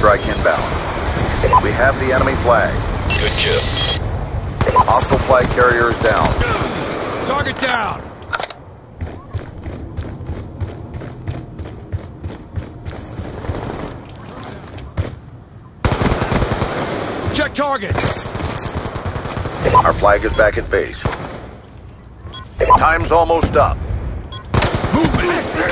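Gunfire from a game rattles in rapid bursts.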